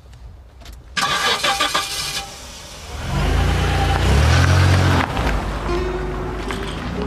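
A car engine roars as the car drives off.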